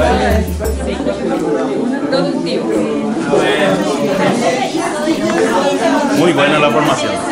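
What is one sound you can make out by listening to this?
Several people chat in the background.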